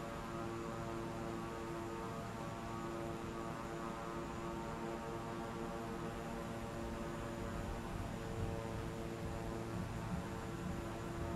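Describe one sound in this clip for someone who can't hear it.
A twin-engine turboprop plane drones steadily in cruise.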